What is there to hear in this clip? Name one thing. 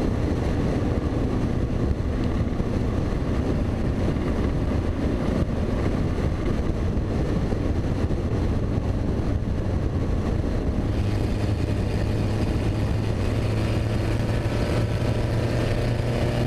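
Wind buffets loudly in an open car.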